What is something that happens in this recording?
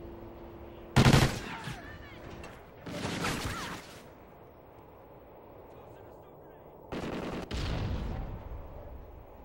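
Gunshots ring out in short, loud bursts.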